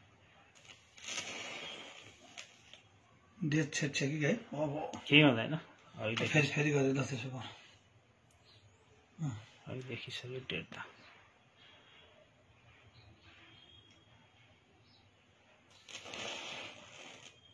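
A match strikes and flares with a short hiss.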